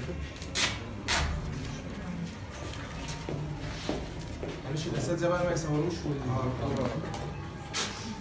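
Several adults talk nearby in a busy indoor room.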